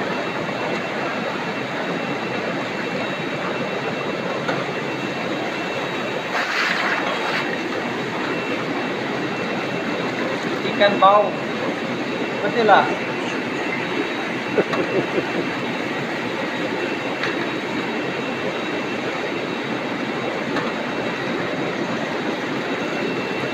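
Water splashes and churns steadily in a tank.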